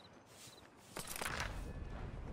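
A paper page flips over.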